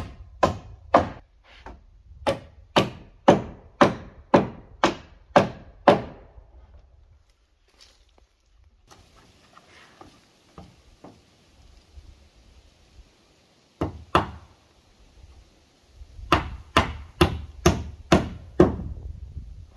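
A hammer strikes nails into wood in quick, ringing blows.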